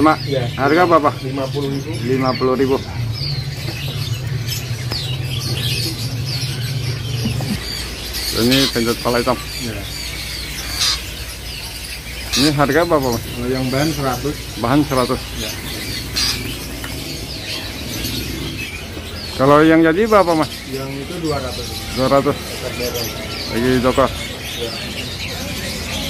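Small birds chirp and twitter.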